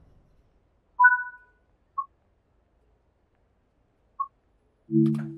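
Electronic chimes beep in a train cab.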